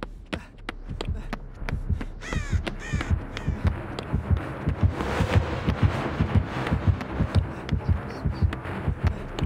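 A heartbeat thumps low and steady, growing louder and faster.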